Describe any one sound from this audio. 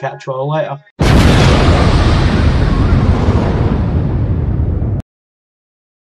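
A loud explosion roars and slowly dies away.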